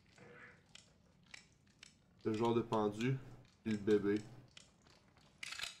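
Metal dials on a padlock click as they turn.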